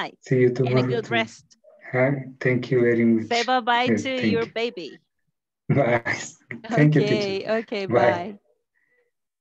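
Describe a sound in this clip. A woman speaks animatedly through a headset microphone on an online call.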